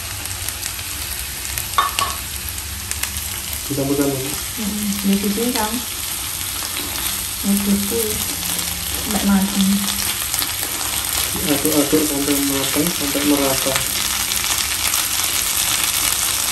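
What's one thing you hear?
Minced meat sizzles in hot oil in a frying pan.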